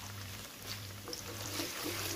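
A wooden spoon stirs and scrapes in a pan.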